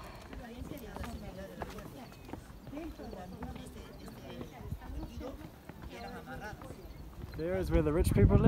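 Young men and women chat quietly nearby.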